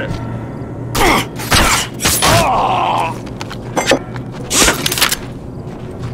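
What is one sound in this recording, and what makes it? Heavy gunshots ring out in loud bursts.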